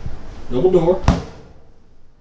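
A metal door shuts with a thud.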